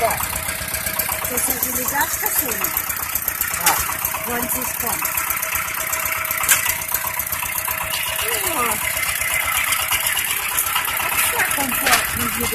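A single-cylinder diesel walk-behind tractor chugs as it drives over grass.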